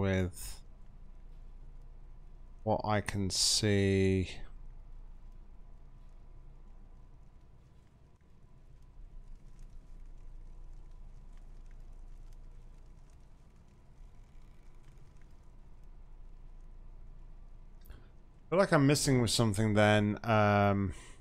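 A man talks casually and up close into a microphone.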